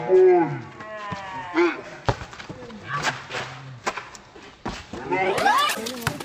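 A basketball bounces on concrete.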